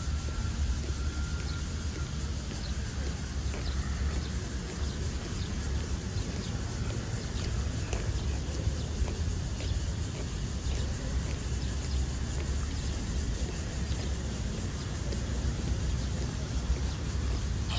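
Hard-soled boots march in step on stone paving.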